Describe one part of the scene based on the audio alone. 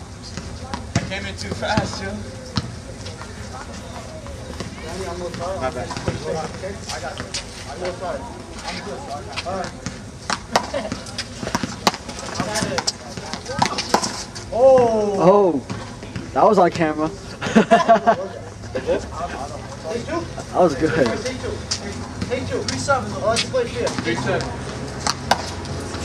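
Young men shout and call out to one another outdoors.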